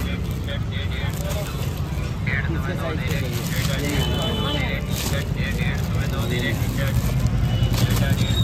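Plastic packaging crinkles as a hand handles it.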